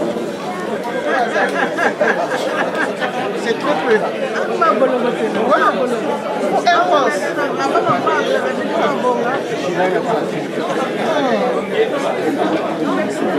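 A crowd of people chatters and murmurs in a room.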